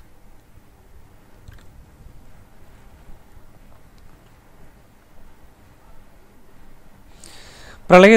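A man speaks faintly into microphones.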